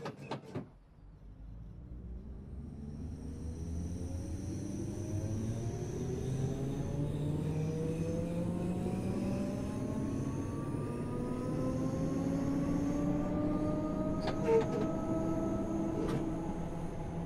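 An electric train's motors whine, rising in pitch as it speeds up.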